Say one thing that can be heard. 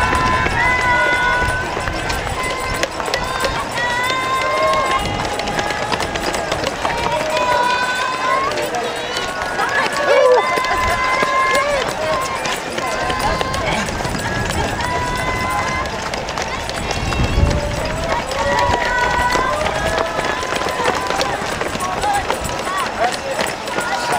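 Many runners' footsteps patter on the road.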